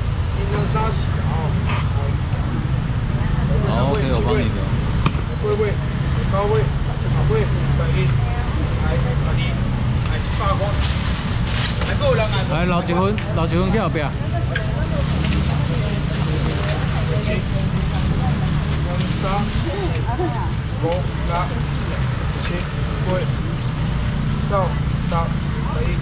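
A man and a woman talk nearby.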